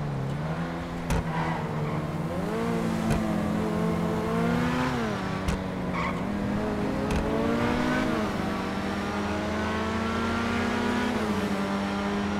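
Tyres hum on the road at speed.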